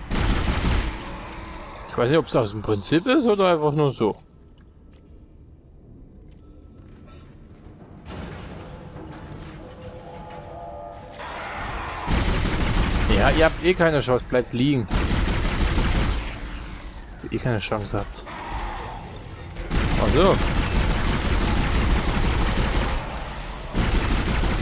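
Gunfire bursts out in loud, quick shots.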